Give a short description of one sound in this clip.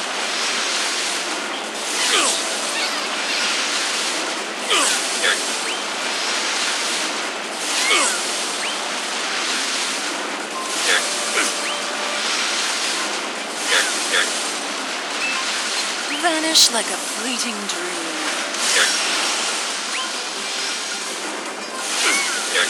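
Sword slashes whoosh and strike.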